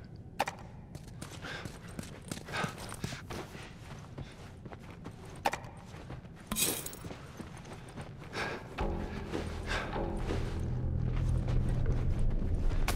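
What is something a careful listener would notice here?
Footsteps tread softly across a hard floor.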